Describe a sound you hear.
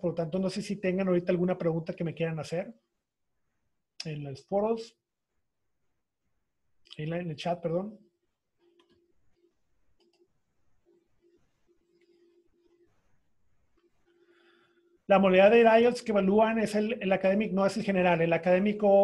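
A middle-aged man talks calmly over an online call.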